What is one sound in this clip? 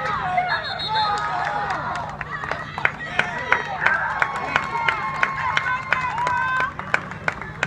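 A crowd of young players and spectators shouts and cheers outdoors.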